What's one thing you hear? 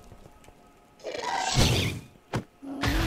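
A creature lets out a high, wailing cry.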